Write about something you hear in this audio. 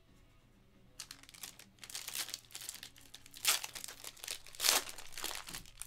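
A foil wrapper crinkles and rustles as hands tear it open.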